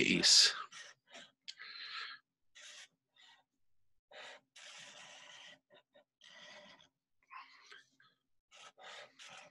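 A marker squeaks and scratches across paper in short strokes.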